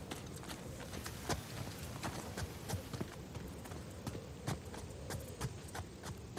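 Footsteps crunch and scuff on dry ground and stone at a running pace.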